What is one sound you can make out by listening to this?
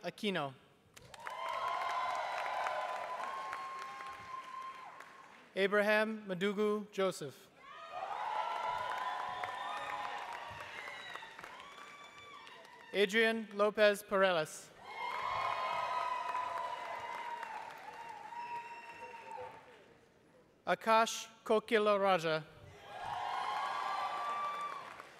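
A crowd applauds in bursts in a large hall.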